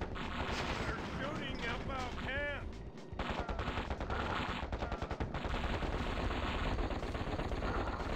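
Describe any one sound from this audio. An explosion booms in a video game.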